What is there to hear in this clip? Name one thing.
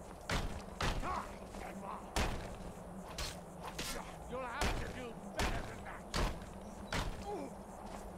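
A creature grunts and growls.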